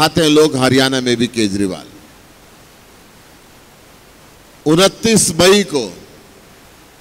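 A man speaks forcefully through a microphone and loudspeakers, in short bursts with pauses.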